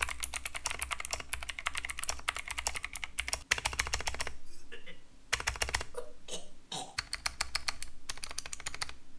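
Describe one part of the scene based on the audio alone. Keyboard keys clack rapidly as someone types fast.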